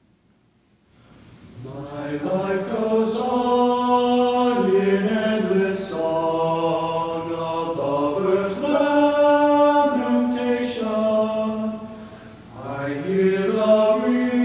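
A large choir sings in an echoing hall.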